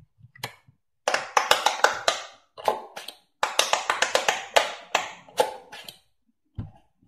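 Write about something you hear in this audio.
Fingers press on a toy's rubber bubbles with quick soft clicks.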